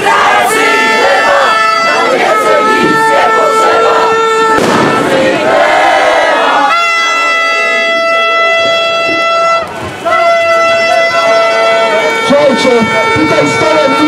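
A large crowd of men and women sings together loudly outdoors.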